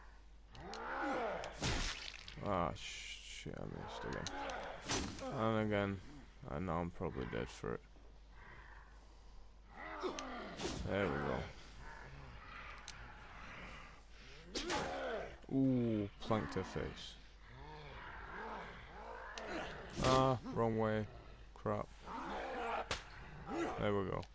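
Heavy blows and impacts thud during a fight.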